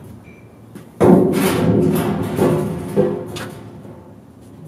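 A gloved hand rubs and thumps against a metal panel.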